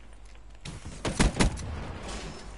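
A gun fires a quick burst of shots.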